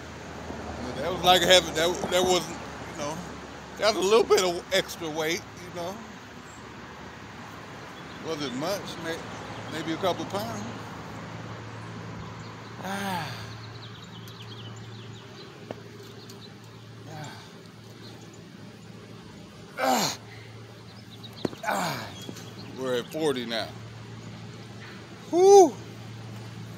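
A young man talks with animation, close by.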